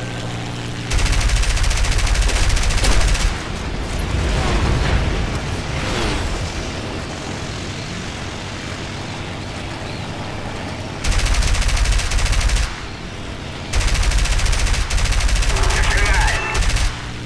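Machine guns fire in long rapid bursts.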